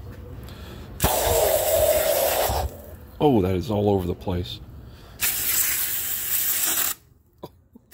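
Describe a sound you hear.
A spray nozzle hisses in loud bursts.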